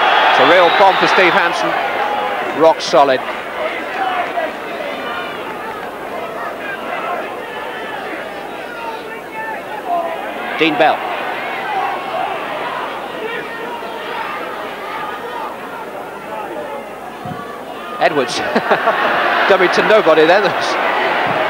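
A large crowd roars and cheers in a stadium, swelling loudly near the end.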